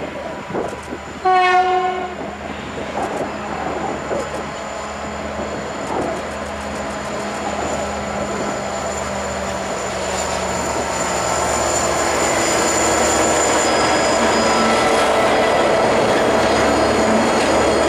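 Diesel-electric locomotives rumble past, hauling a heavy train.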